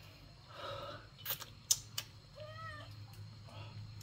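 A man chews food with his mouth close by.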